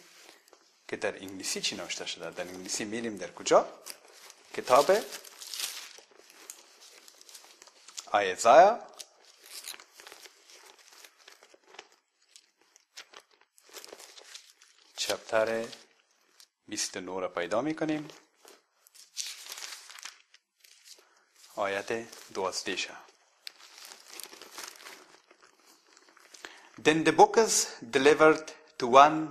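A young man reads aloud in a chanting, melodic voice close to a microphone, with pauses between phrases.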